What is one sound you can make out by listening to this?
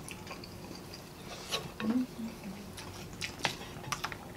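Utensils clink against dishes.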